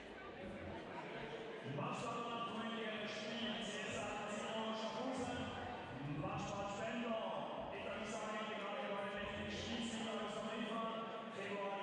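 Young women talk in a large echoing hall.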